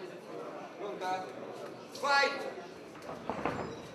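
A male referee calls out loudly.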